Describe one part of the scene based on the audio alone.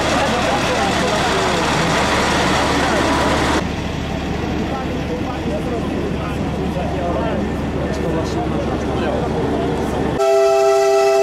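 A group of men chat nearby outdoors.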